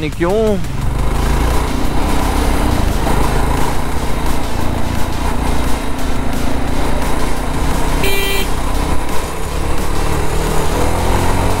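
Wind rushes past a moving motorcycle rider.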